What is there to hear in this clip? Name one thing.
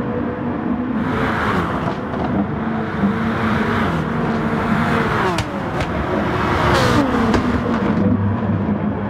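Racing cars whoosh past one after another, their engine pitch dropping as they go by.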